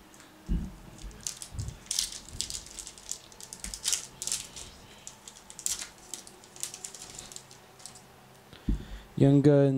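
A foil wrapper crinkles and tears as it is opened by hand.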